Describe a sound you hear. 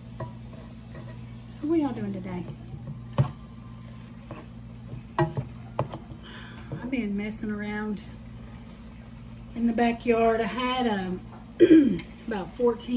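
A metal utensil scrapes and clanks against a pan.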